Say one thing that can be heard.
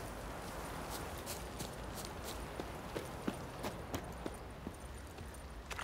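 Footsteps tread on soft ground.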